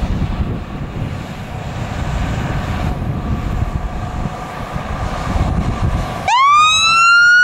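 A fire truck engine rumbles as the truck drives closer.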